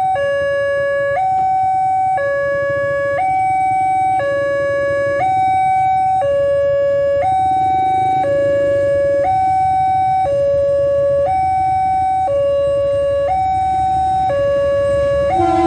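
A railway crossing bell rings loudly in a steady two-tone alternation.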